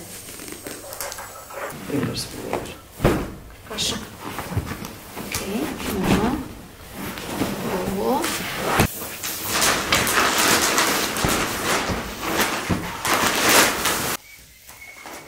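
Cushions thump and fabric rustles as a sofa is rearranged.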